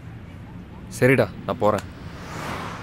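Another young man answers calmly up close.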